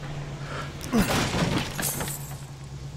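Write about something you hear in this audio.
A wooden crate smashes and splinters.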